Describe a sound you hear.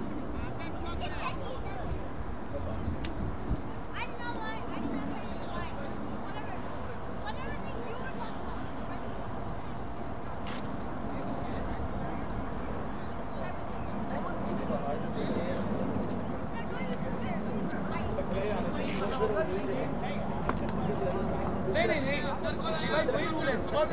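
Men call out to one another at a distance.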